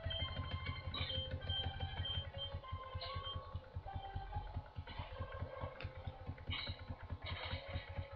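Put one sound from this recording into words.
Bright chiptune game music plays steadily.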